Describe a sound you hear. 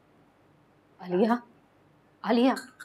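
A woman speaks softly and anxiously close by.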